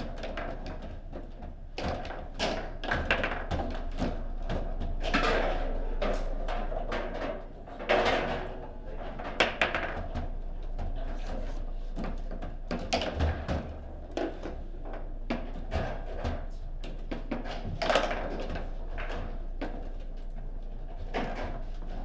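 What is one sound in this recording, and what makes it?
Foosball figures knock a ball sharply around a table.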